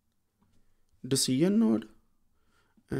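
A man speaks briefly and calmly, close to a microphone.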